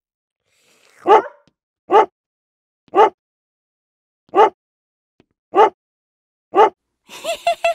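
A toy keyboard plays short single notes.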